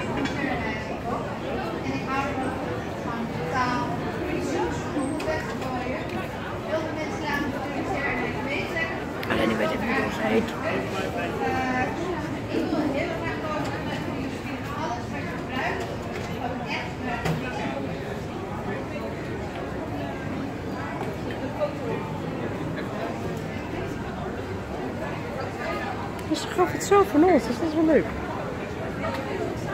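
A crowd of adults chatters steadily indoors.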